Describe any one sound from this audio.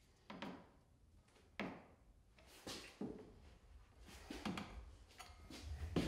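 A drywall knife scrapes and taps against a metal corner bead.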